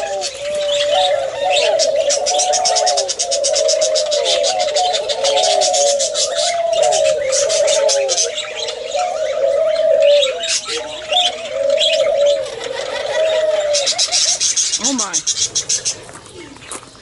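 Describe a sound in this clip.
Small birds chirp and twitter rapidly.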